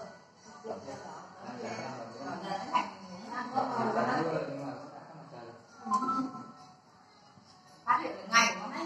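Several men and women talk casually nearby.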